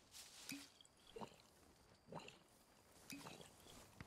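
Liquid sloshes as someone drinks from a canteen.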